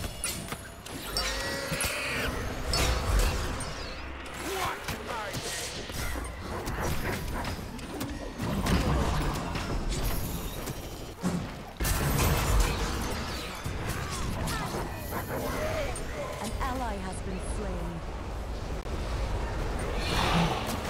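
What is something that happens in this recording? Magical spell blasts whoosh and crackle in a fantasy battle.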